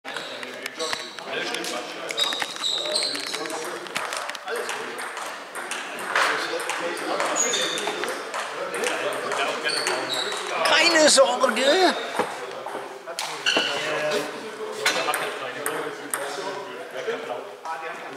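Men talk close by with animation in an echoing hall.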